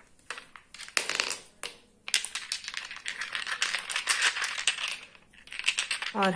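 Small glass jars clink and rattle together in hands.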